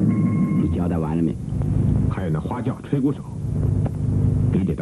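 A middle-aged man speaks firmly, close by.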